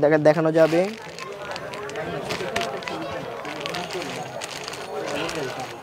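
A plastic bag crinkles and rustles as it is tied.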